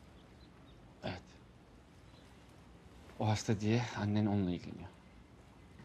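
A man speaks calmly in a low voice close by.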